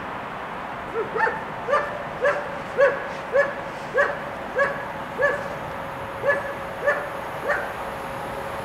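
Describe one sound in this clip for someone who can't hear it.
A level crossing bell dings in a steady rhythm.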